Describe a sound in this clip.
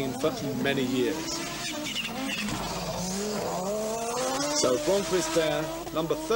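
A rally car engine roars and revs as the car speeds past.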